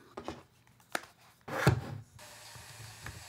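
A plastic device clicks and knocks as hands handle it.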